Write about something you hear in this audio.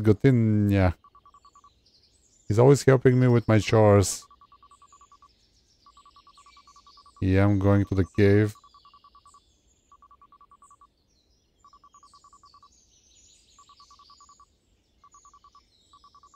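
Short electronic beeps tick rapidly in bursts.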